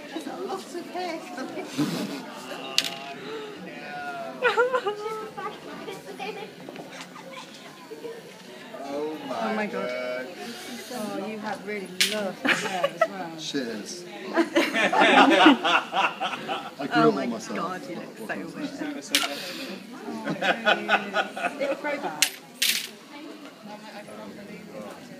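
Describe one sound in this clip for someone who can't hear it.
Electric hair clippers buzz close by.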